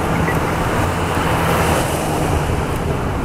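A truck engine rumbles as it drives past close by.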